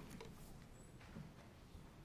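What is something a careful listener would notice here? Paper rustles as a man turns a page.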